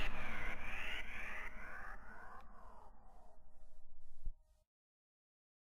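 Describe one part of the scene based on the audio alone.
A computer plays a soft chiming tune that slowly fades away.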